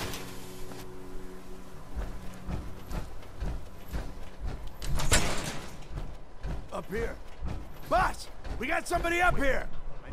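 Heavy metal footsteps thud and clank.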